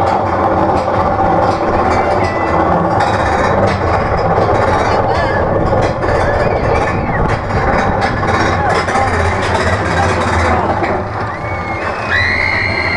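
A roller coaster car rattles and clatters along its track.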